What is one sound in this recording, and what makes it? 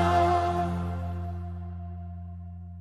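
A man sings into a microphone, holding a long note.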